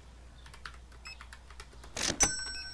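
A payment terminal's keypad beeps as keys are pressed.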